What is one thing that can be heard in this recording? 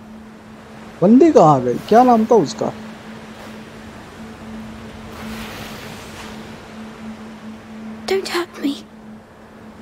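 A young girl speaks anxiously, close by.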